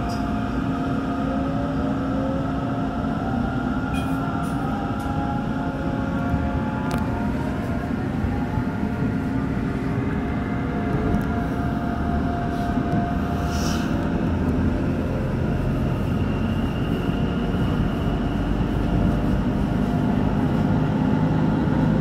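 Wheels rumble on the rails inside an electric commuter train.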